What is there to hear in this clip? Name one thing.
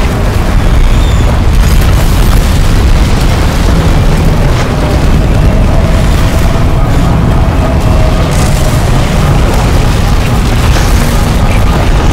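Debris clatters and crashes in the wind.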